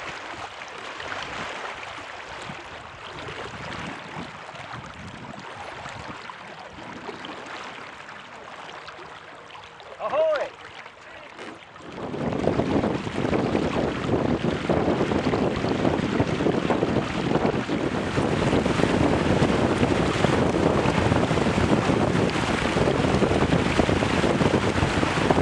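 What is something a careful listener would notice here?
Wind rushes loudly past outdoors on open water.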